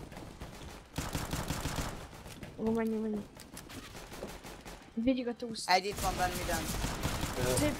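A pistol fires several sharp shots.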